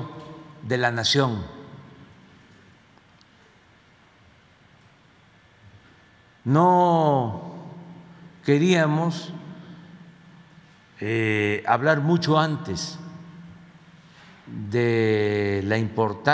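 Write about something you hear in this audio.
An elderly man speaks slowly and deliberately into a microphone, with long pauses between phrases.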